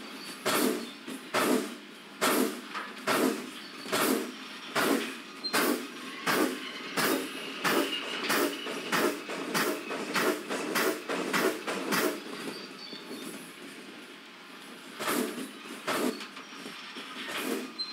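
A steam locomotive chuffs in a steady rhythm as it moves along.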